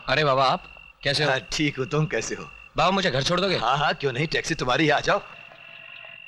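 A young man talks with another man at close range.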